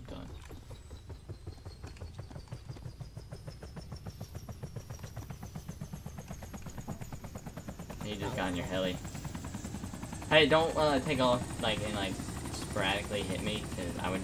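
A helicopter's rotor thumps in a rapid, steady beat close by.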